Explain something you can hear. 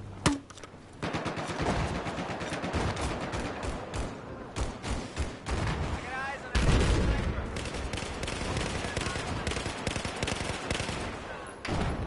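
Rifle fire rattles in rapid bursts close by.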